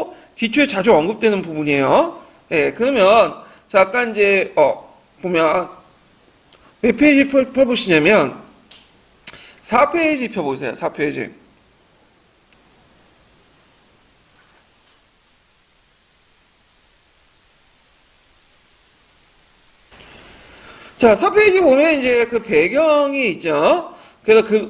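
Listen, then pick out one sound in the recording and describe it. A young man speaks calmly into a microphone, pausing now and then.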